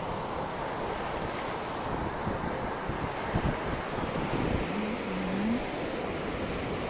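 Small waves wash up on a sandy shore.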